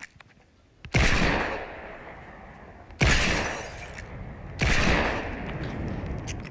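Gunshots crack sharply a few times, each followed by a ringing tail.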